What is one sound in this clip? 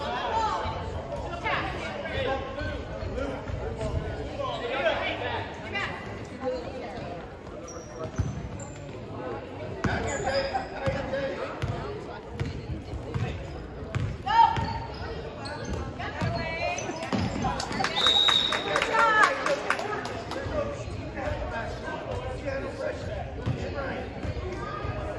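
Spectators call out and chatter in an echoing gym.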